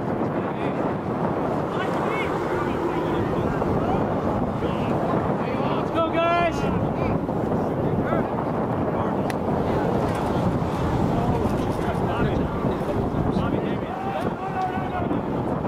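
Young men shout and call out to each other on an open field.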